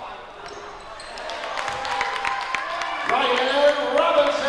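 A crowd cheers and shouts, getting louder.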